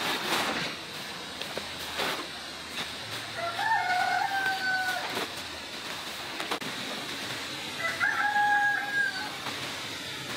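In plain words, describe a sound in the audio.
Hands scrape and scoop loose grains across concrete.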